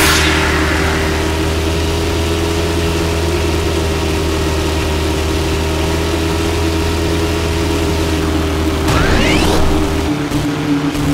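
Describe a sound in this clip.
A buggy engine drones steadily at high revs.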